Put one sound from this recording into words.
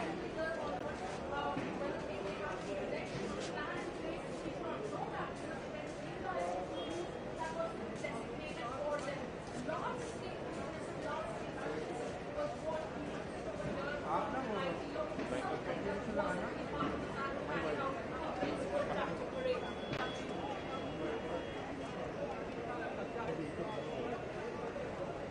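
A large crowd of men chatters and shouts outdoors.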